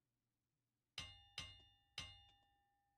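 Bright electronic chimes ring out three times in quick succession.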